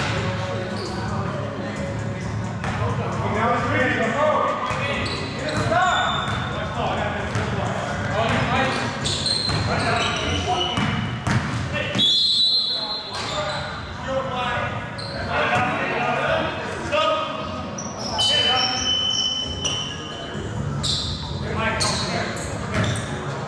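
Men call out and talk loudly in an echoing hall.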